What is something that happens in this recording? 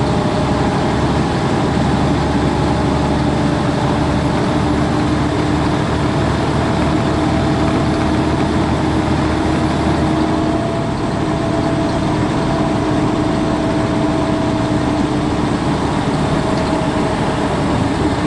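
A truck engine drones steadily at highway speed.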